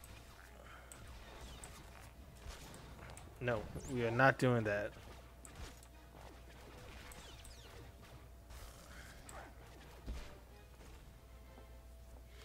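Blaster shots and combat effects crackle and zap.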